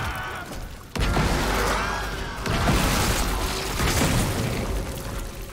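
A gun fires with a loud burst.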